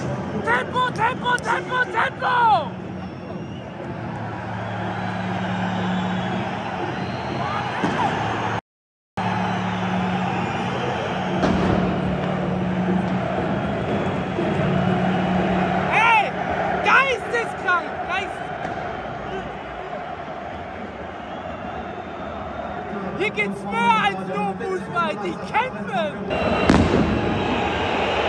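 A large stadium crowd chants and sings in unison.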